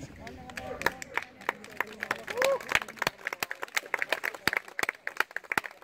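A small group of people claps.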